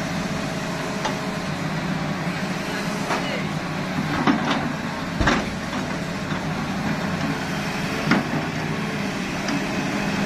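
An excavator bucket scrapes and knocks against dirt and rock.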